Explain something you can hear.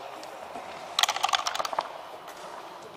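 Dice rattle and clatter on a wooden board.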